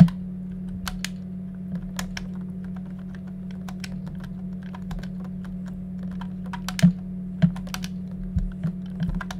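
Short electronic clicks and blips sound from a video game.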